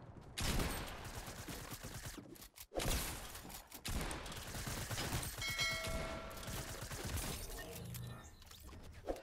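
Wooden panels clatter into place in rapid knocks.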